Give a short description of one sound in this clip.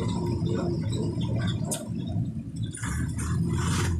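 Another vehicle drives past on the road.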